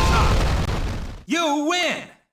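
A video game plays a loud crashing sound effect.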